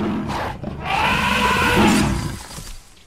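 An elephant trumpets loudly.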